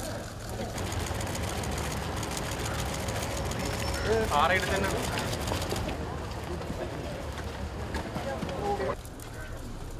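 A crowd of people chatter and murmur outdoors.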